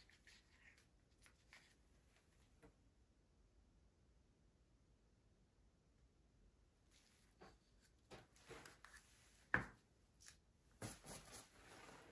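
Gloved hands rustle and tap against plastic cups and bottles.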